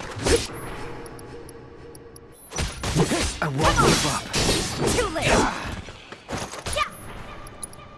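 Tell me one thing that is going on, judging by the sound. A sword clangs and slashes against a creature in quick blows.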